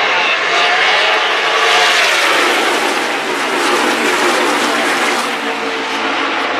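Race cars roar loudly past on a track.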